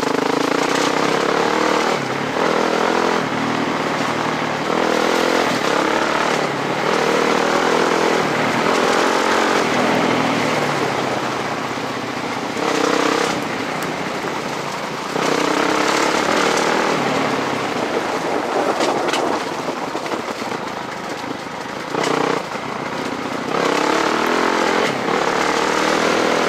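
Footsteps crunch on a gravel track.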